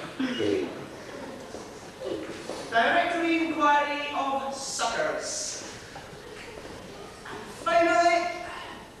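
A man speaks and sings dramatically on a stage, heard from the audience in a large room.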